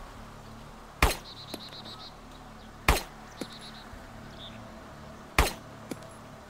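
A rifle fires loud single shots, a few seconds apart.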